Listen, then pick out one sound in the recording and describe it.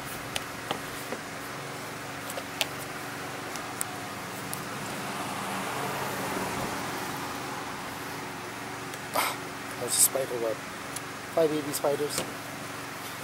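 A plastic frame clicks and knocks.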